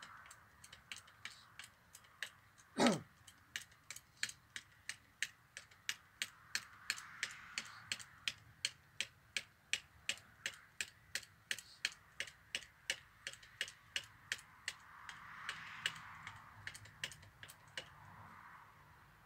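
A man taps rapidly with a hammer on a wooden pallet.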